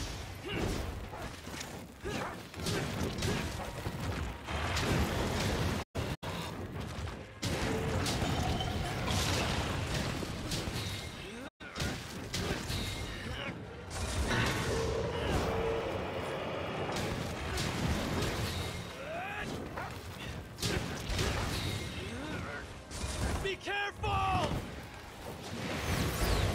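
Game weapons clash and strike against a monster in quick bursts.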